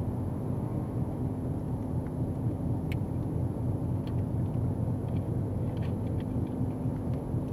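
Tyres roll on asphalt with a low, steady rumble.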